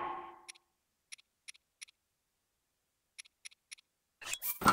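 Soft menu clicks tick in quick bursts.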